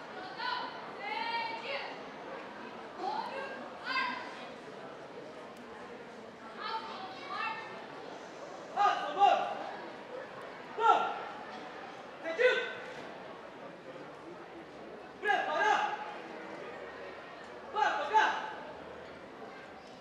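A man speaks loudly outdoors, calling out in short bursts.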